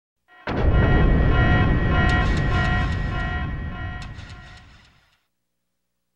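A loud warning alarm blares with a rapid pulsing tone over a deep rumble, then fades.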